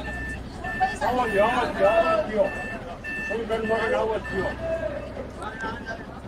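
A crowd of men and women chatters nearby, slightly muffled.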